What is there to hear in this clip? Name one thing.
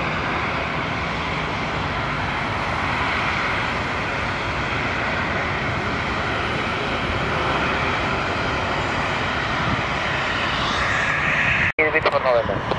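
Jet engines roar loudly as an airliner takes off.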